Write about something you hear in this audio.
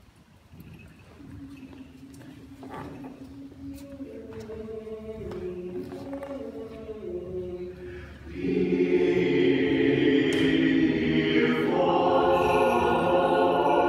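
Men chant together in a reverberant hall, growing louder.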